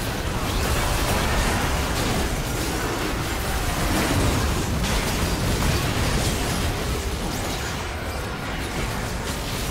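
Magic blasts and sword hits crash and whoosh in a busy video game battle.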